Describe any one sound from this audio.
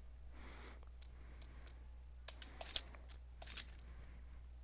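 Short electronic menu blips and chimes sound as items are selected.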